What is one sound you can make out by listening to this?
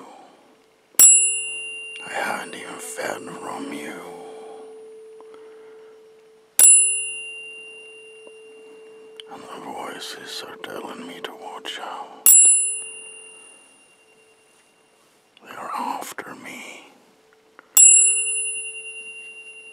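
Tuning forks are struck and ring with a clear, fading tone.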